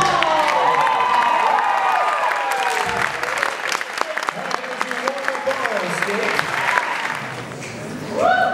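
A live band plays lively swing music in a large echoing hall.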